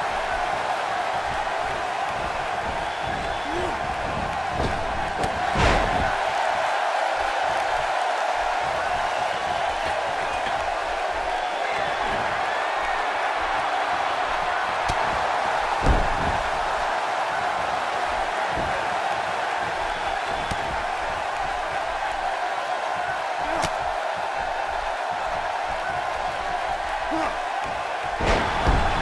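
A large arena crowd roars and cheers.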